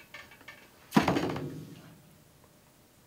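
A cymbal crashes and rings.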